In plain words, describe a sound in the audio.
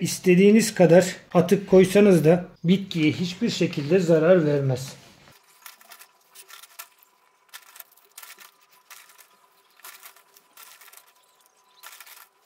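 Loose soil crumbles and patters as hands press it down.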